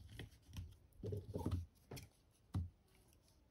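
Scissors snip through hair.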